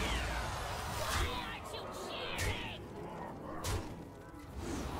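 Magical chimes and impact sounds burst from a card game.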